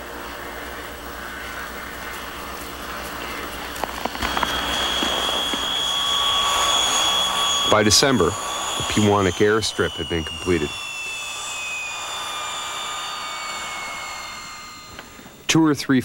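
A propeller plane's engines drone and whine as the plane lands and rolls past.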